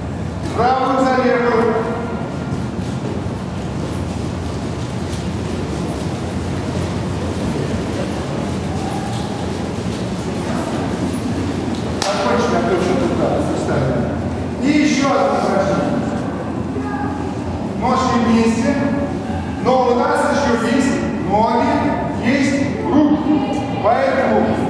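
A man speaks loudly in an echoing hall.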